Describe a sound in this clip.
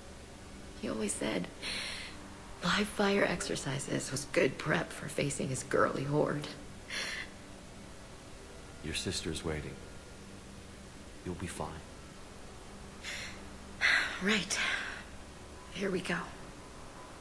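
A young woman speaks calmly and warmly, close by.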